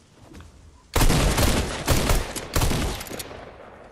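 Video game gunfire bursts out rapidly.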